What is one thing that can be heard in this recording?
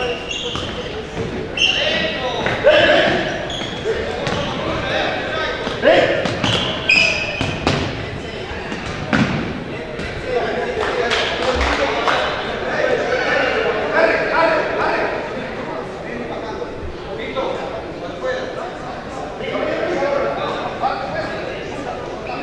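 Men shout and call out across a large echoing hall.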